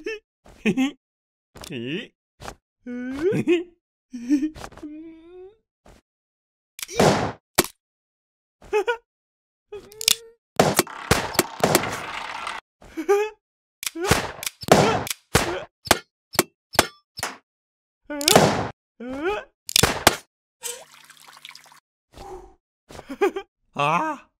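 A man talks with animation, close by.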